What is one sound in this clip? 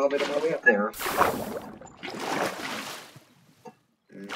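Water gushes and splashes.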